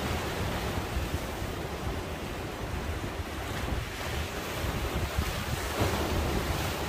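Waves wash and splash against rocks along the shore.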